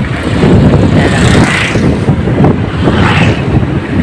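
A motorbike engine passes close by.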